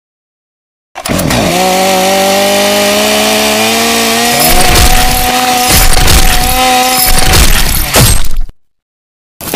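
A chainsaw engine roars steadily.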